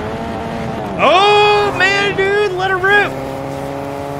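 A young man sings out loudly in drawn-out notes close to a microphone.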